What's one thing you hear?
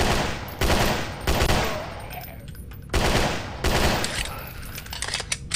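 Gunshots fire loudly in quick bursts.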